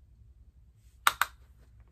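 A makeup brush taps twice against a plastic compact.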